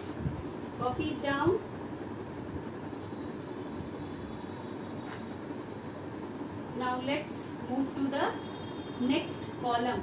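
A woman speaks slowly and clearly, close by, in short phrases.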